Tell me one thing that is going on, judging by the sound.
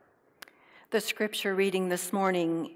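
A woman reads aloud clearly through a microphone.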